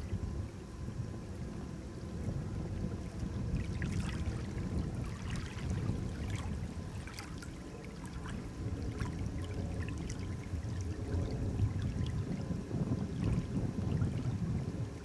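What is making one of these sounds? Small waves lap at a lakeshore.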